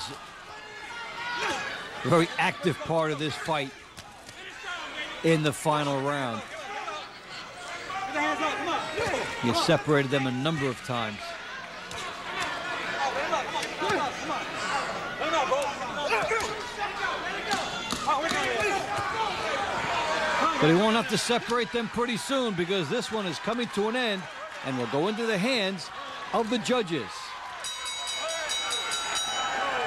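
A crowd cheers loudly in a large hall.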